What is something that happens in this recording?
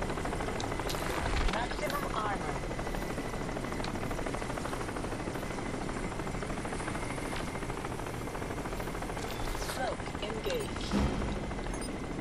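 An electric crackle buzzes briefly.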